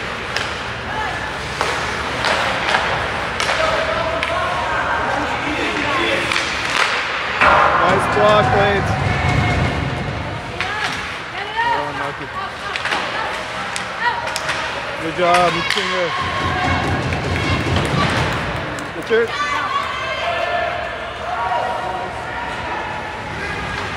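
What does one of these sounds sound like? A crowd of spectators chatters and calls out.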